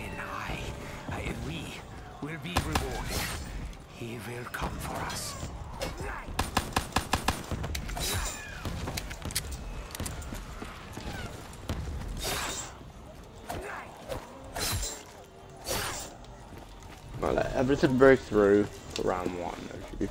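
Zombies groan and snarl close by.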